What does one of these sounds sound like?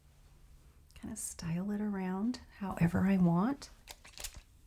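A woman speaks close by, calmly.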